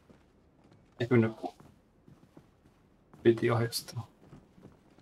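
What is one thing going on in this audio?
A man speaks briefly in a low voice nearby.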